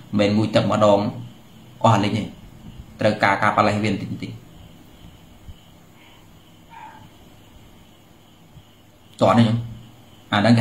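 A man speaks calmly and close up, with pauses.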